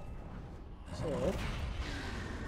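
A beast snarls and growls close by.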